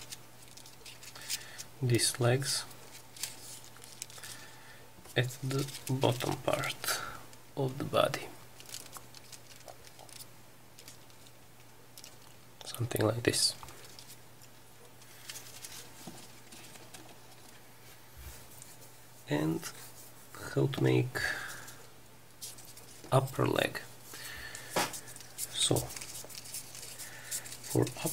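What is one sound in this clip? Folded paper rustles and crinkles as hands handle it.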